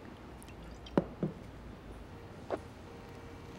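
A glass knocks down onto a hard table.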